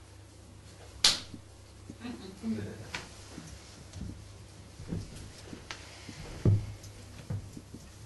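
Knocks and thuds sound on a wooden stage floor.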